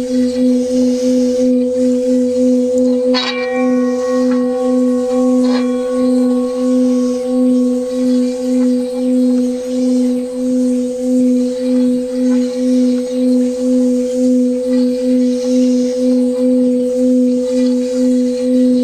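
A metal bowl sings with a steady, wavering hum as its rim is rubbed.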